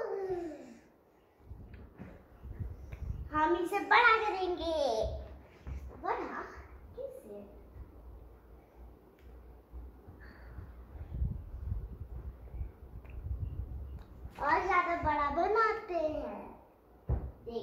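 A young girl speaks and sings in a high voice close by.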